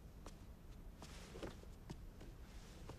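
Heavy fabric swishes as a robe is swung around.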